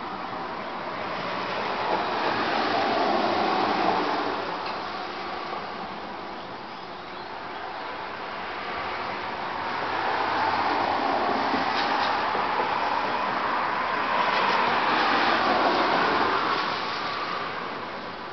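Cars drive past on a wet road, their tyres hissing as they come and go.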